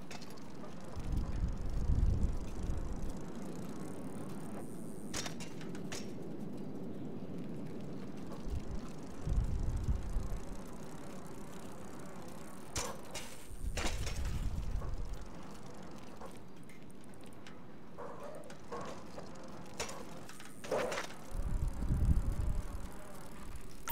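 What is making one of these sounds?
A bicycle rolls over a wooden floor with low rumbling thumps.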